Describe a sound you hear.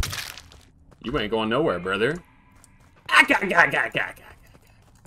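A man exclaims loudly and with animation into a microphone.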